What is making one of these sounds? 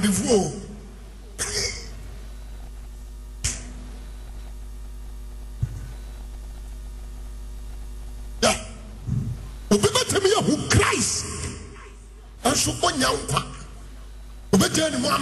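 A man preaches loudly and with passion into a microphone, in a large echoing hall.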